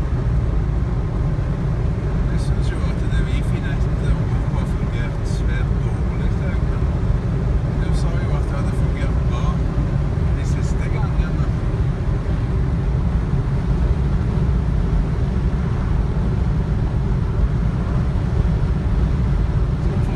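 A car's engine and tyres rumble steadily on a highway, heard from inside the car.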